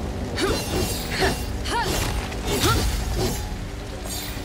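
A magical shield hums and crackles with sparkling chimes.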